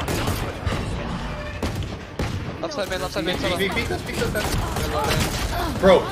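Rapid gunshots fire in a video game.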